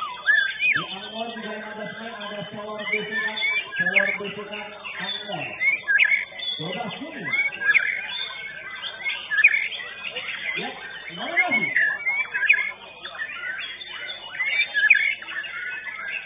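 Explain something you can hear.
A caged songbird chirps and trills loudly.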